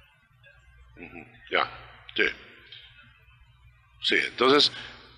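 A man speaks with animation into a microphone, in short bursts.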